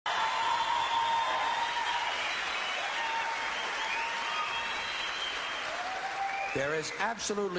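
A large audience cheers and applauds in a big hall.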